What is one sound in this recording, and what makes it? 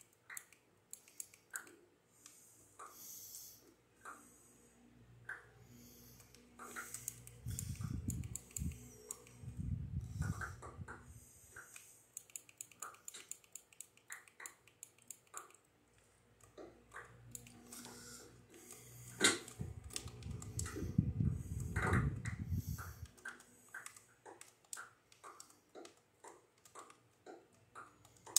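Video game sound effects click, pop and thud through a television speaker.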